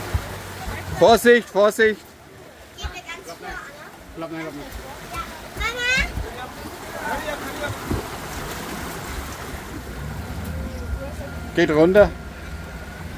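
Children shout and call out excitedly nearby.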